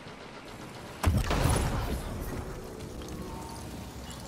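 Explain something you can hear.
A heavy blast booms and rumbles.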